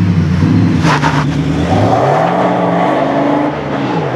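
A van drives off and fades away down the road.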